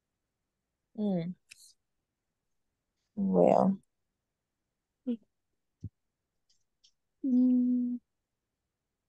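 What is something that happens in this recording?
A woman speaks briefly over an online call, in short bursts with long pauses.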